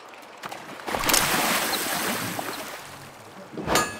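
Water splashes loudly as a fish is pulled out.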